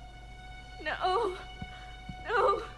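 A young woman murmurs weakly.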